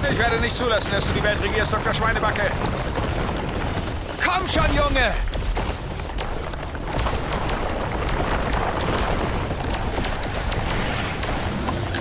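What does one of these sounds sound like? A horse's hooves gallop quickly over hard, dusty ground.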